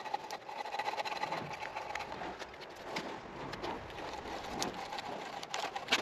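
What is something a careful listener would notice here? A drawknife scrapes shavings off a log.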